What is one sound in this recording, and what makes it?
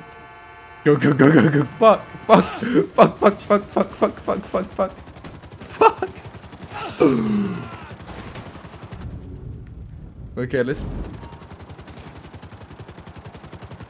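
A helicopter's rotor whirs and thumps as it lifts off.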